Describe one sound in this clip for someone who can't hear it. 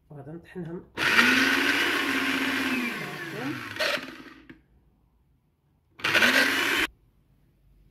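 A blender motor whirs loudly in short bursts.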